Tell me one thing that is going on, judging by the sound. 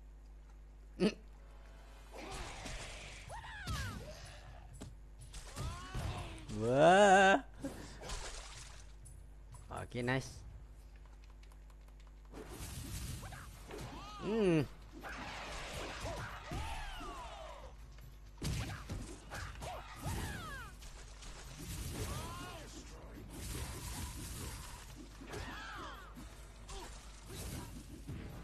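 Punches and kicks thud during a fight.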